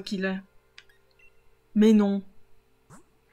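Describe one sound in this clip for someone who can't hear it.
A young woman speaks briefly with animation into a microphone.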